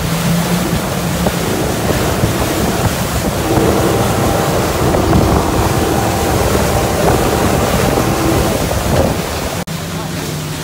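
Water rushes and churns behind a speeding boat.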